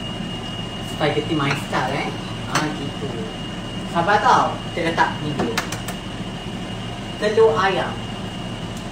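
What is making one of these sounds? A young woman talks softly close by.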